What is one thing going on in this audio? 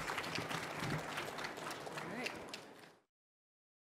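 A woman speaks into a microphone.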